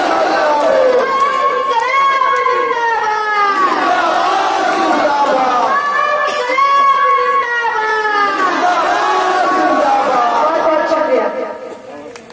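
A young woman chants slogans loudly through a microphone.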